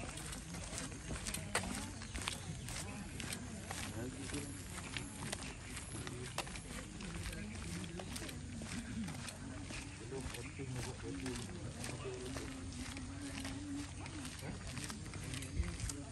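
Footsteps tread on a paved path.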